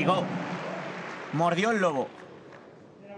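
A crowd cheers and applauds in a large echoing hall, then dies down.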